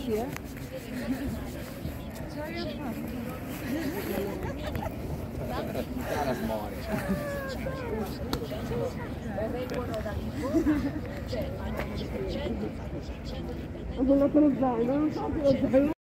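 A crowd of people chatters outdoors in an open square.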